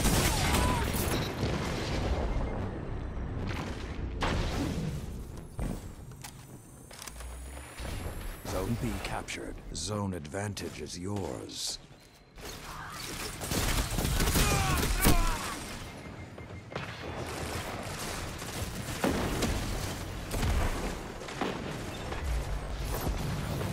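Gunfire from a game weapon cracks in rapid bursts.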